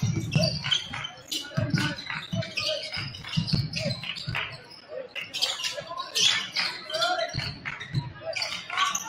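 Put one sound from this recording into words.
A basketball bounces with sharp thuds on a hard floor.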